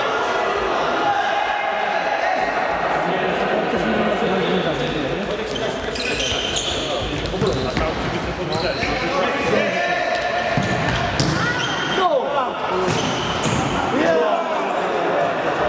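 A futsal ball is kicked in an echoing hall.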